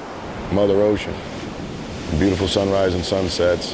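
Small waves wash softly onto a shore.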